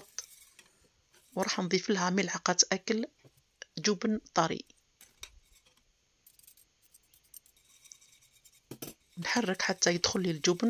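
A wire whisk scrapes and clinks against a metal pot.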